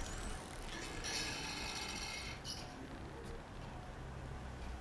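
A bowstring is drawn and creaks.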